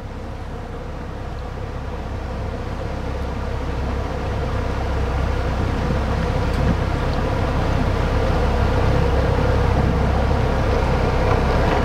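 A boat's outboard motor hums steadily close by.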